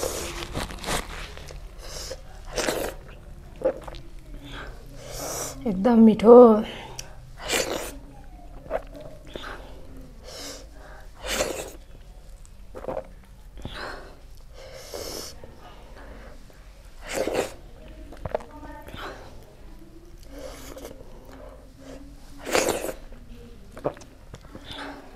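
A woman chews and smacks her lips loudly, close to a microphone.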